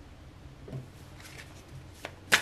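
Playing cards rustle in a person's hands.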